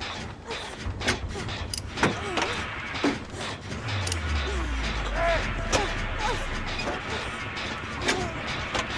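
Metal parts click and clank as a machine is worked on by hand.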